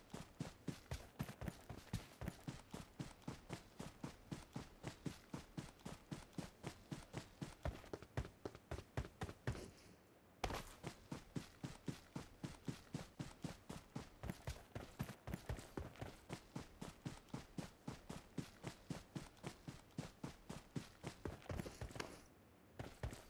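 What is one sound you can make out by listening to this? Footsteps run quickly and steadily over grass and ground.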